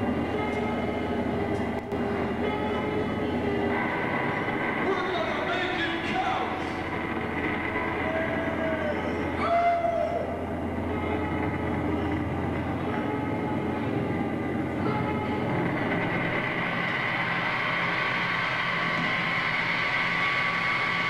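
A man sings loudly through a microphone over loudspeakers.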